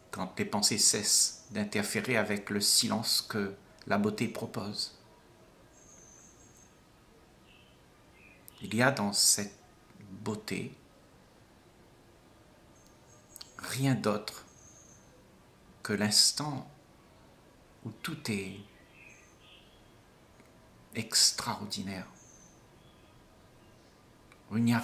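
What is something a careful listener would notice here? An elderly man speaks calmly and close to a microphone, with long pauses.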